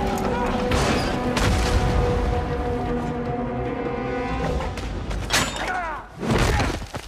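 Heavy wooden beams creak and rumble as a structure collapses.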